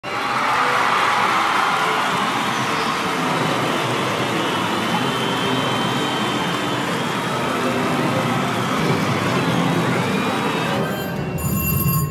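A busy hall hums with crowd chatter and chiming machines.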